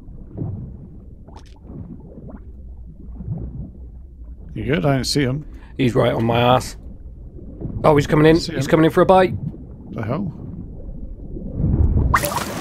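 Water rumbles and bubbles dully, heard from underwater.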